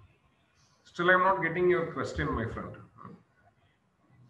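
A man speaks calmly through a microphone, in bursts with long pauses.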